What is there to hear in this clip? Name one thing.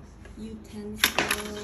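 Metal cutlery clinks and rattles in a drawer.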